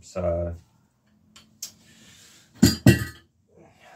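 A metal handlebar clanks against a bicycle frame.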